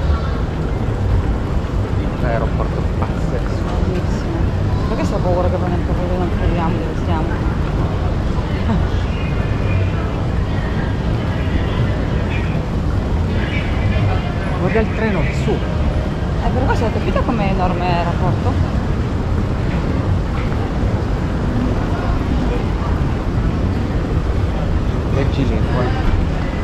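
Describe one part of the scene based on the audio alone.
Voices of a crowd murmur in a large echoing hall.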